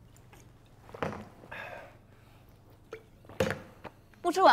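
A young woman gulps a drink from a glass bottle.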